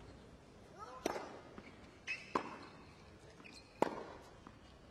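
A tennis ball is struck sharply by rackets, back and forth.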